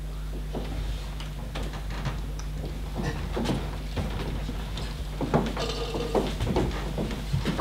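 Footsteps shuffle across a wooden stage.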